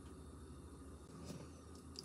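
Liquid pours from a bottle into a bowl.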